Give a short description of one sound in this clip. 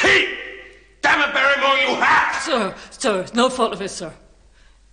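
A man speaks angrily, close by.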